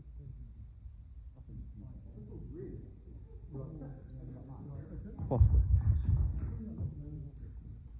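Feet thump and shuffle on a wooden floor in an echoing hall.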